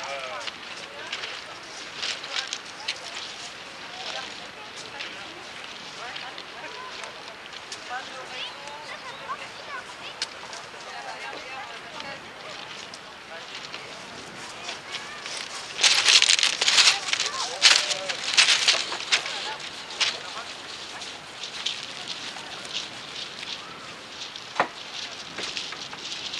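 A paintbrush scratches and dabs against a canvas.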